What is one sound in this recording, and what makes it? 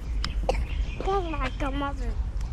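A young child calls out in a high voice close by.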